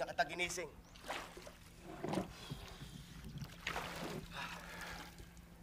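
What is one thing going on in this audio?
Water splashes and drips.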